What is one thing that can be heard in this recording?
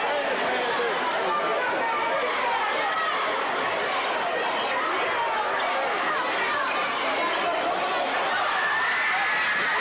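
Basketball shoes squeak on a hardwood floor.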